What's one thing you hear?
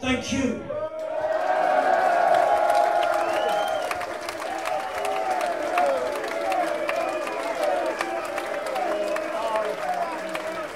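A crowd sings and chants together.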